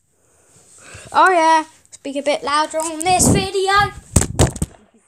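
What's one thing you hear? A young boy speaks loudly and excitedly close to the microphone.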